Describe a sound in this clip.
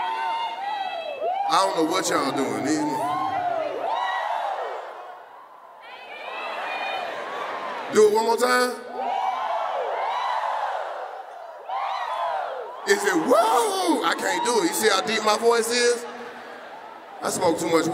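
A young man speaks with animation into a microphone, heard through loudspeakers in a large echoing hall.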